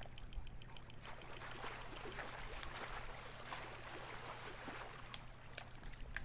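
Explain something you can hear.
A fish splashes and thrashes in the water.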